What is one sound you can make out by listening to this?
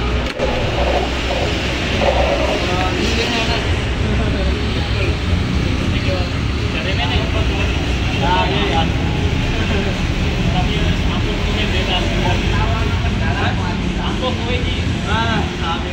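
Plastic scooter panels click and rattle as hands work on them.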